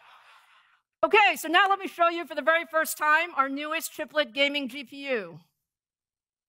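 A middle-aged woman speaks calmly through a microphone in a large hall.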